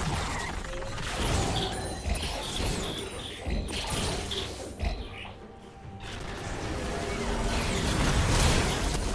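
Game spells and attacks crackle and burst in a busy fight.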